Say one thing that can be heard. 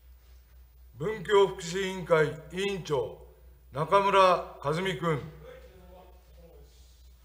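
An elderly man speaks calmly into a microphone in an echoing hall.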